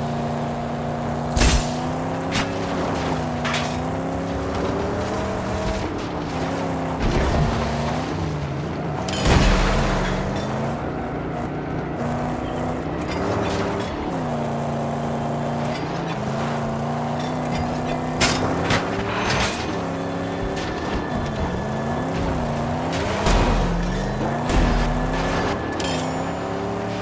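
A car engine roars steadily, rising and falling in pitch.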